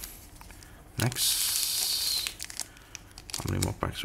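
A foil wrapper crinkles.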